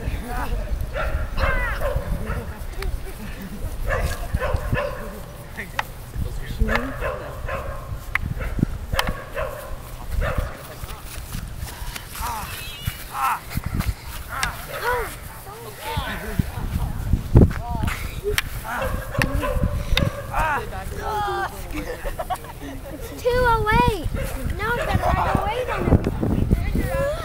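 Boys shout and yell outdoors during play.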